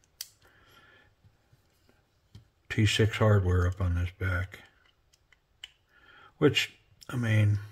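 A small screwdriver scrapes and clicks against tiny metal screws.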